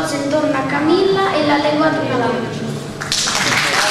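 A young boy speaks clearly through a microphone.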